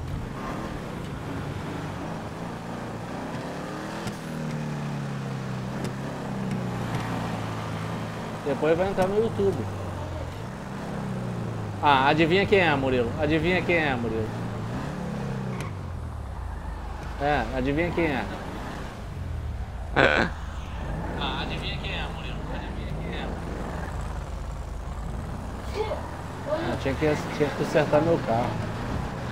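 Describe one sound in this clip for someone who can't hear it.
A car engine hums and revs up and down as a car drives along a road.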